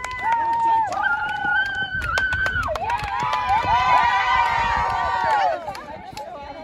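Young women shout and cheer excitedly nearby.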